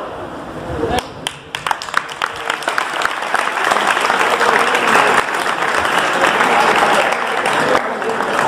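A crowd of children claps.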